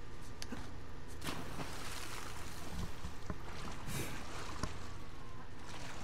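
Water splashes as a man swims.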